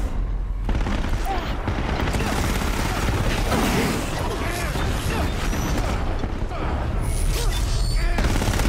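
Explosions boom and flames roar in bursts.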